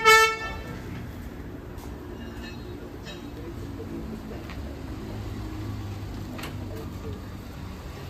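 A car engine hums as the car rolls slowly forward over paving.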